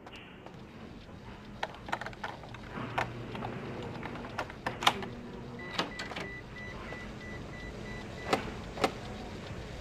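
A lock clicks and rattles as it is picked.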